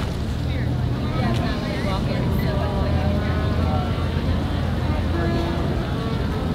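A boat engine hums steadily across the water.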